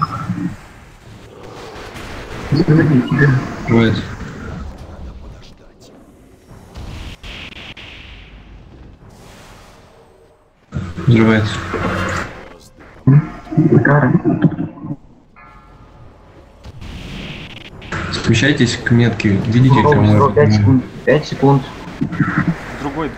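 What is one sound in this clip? Magical spell effects whoosh and crackle.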